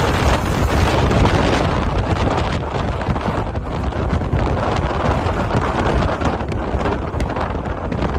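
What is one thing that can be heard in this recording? A car engine hums steadily as it drives along a road.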